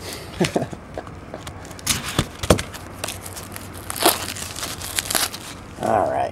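Plastic wrapping crinkles and rustles as hands tear it open.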